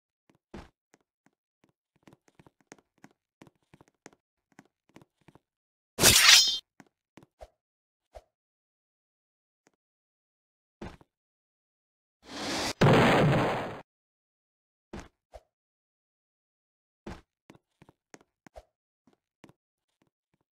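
Footsteps tap on wooden planks.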